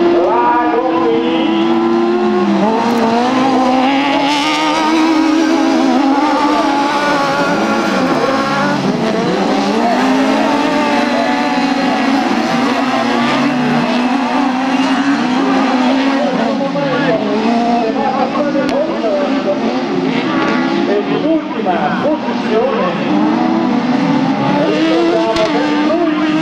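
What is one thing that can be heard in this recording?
Racing car engines roar and whine, rising and falling in pitch as the cars speed past.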